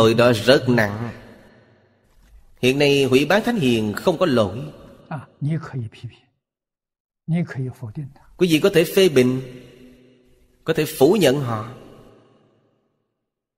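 An elderly man speaks calmly and with animation into a close microphone, with pauses.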